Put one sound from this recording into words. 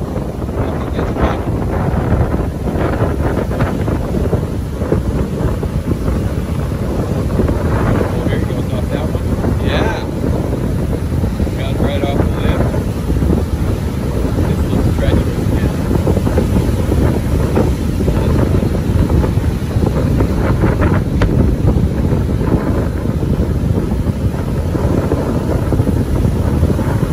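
Waves crash and roar on the shore close by.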